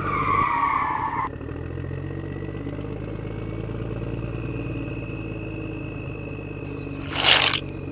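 A toy truck's plastic wheels roll over sand.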